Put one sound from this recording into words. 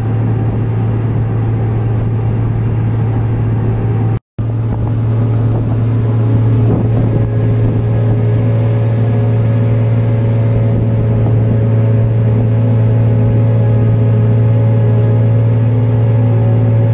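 A combine harvester's engine drones steadily.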